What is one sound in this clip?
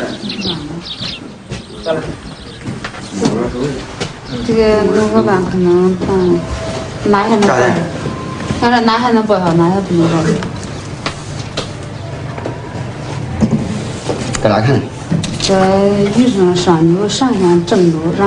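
Papers rustle as they are handled.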